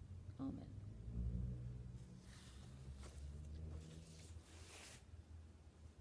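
An elderly woman speaks calmly, close to the microphone.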